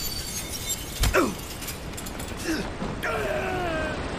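A man grunts in pain.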